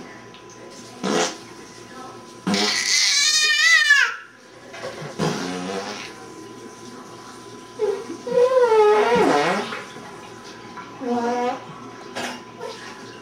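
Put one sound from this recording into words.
A baby squeals and laughs close by.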